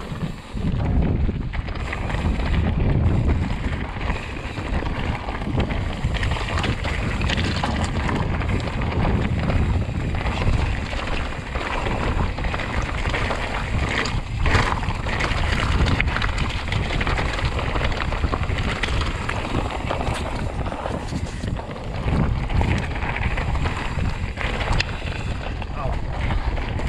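Wind rumbles loudly past the rider.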